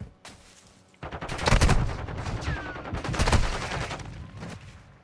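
Gunfire bursts loudly at close range.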